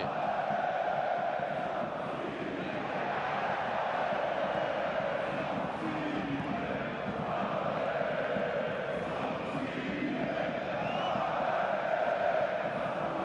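A large stadium crowd chants and sings loudly throughout.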